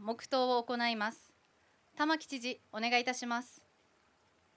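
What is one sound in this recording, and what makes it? A young woman reads out calmly into a microphone.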